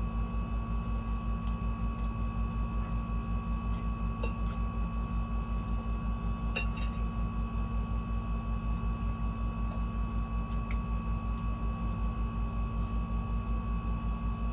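A fork clinks and scrapes against a plate.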